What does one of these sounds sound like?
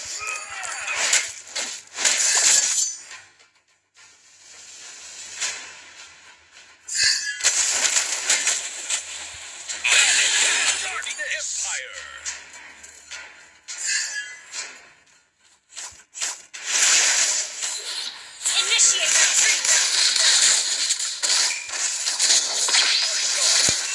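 Sword clashes and magic blasts crackle in bursts during a fast battle.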